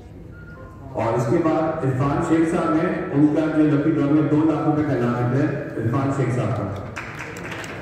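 A man speaks through a loudspeaker in a large hall.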